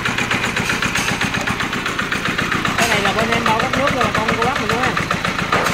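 A small engine idles with a rapid, steady chugging.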